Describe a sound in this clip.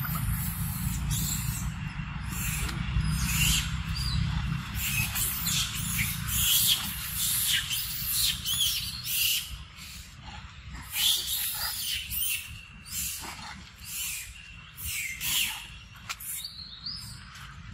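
A macaque chews on a juicy mango.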